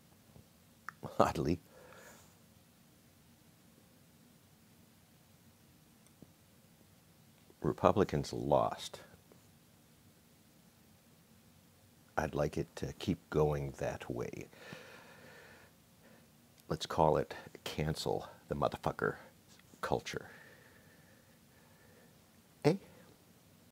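An elderly man speaks calmly and close up, in short bursts with pauses.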